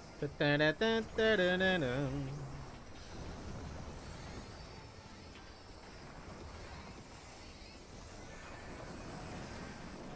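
Magic spells whoosh and crackle.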